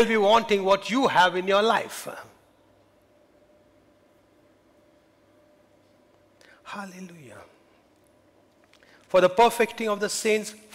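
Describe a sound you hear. A middle-aged man speaks with animation through a headset microphone, pausing between phrases.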